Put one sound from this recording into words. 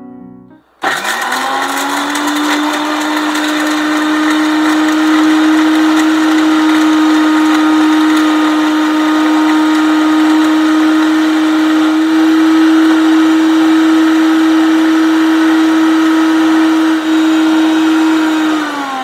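A mixer grinder whirs loudly and steadily, then winds down.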